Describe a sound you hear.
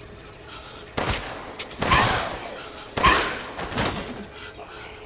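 A pistol fires several loud shots.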